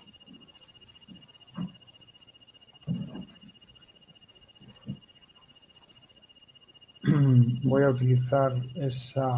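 A man speaks calmly and close to a microphone, quietly at first and then louder.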